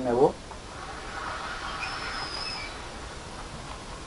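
A man breathes in deeply through his nose, close by.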